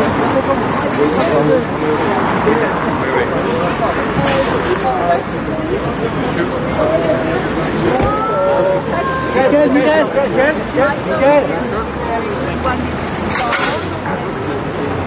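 A crowd of men and women talk and call out close by outdoors.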